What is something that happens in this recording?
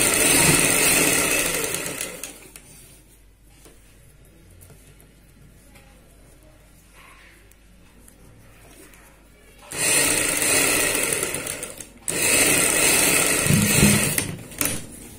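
A sewing machine whirs and rattles as it stitches.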